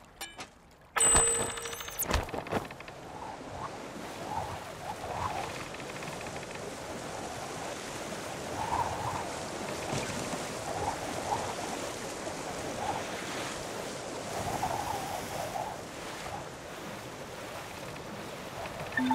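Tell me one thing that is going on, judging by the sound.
Water rushes and splashes against a sailing boat's hull.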